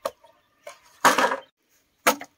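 A bamboo pole clatters down onto the ground.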